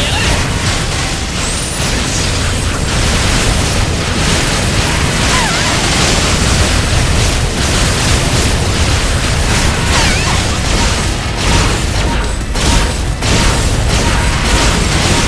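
Rapid laser gunfire zaps continuously.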